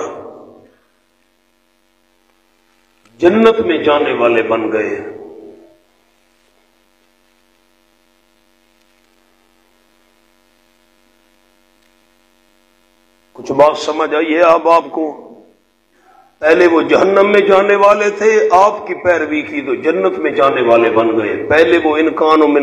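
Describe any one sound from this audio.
A man recites in a chanting voice through a microphone.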